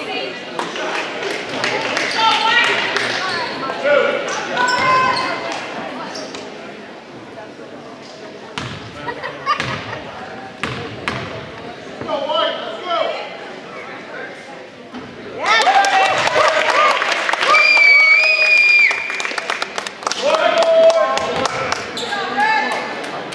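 People talk and call out in a large echoing gym.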